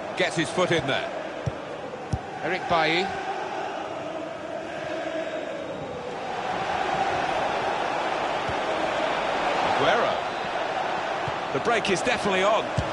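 A large stadium crowd roars and murmurs steadily, swelling louder later on.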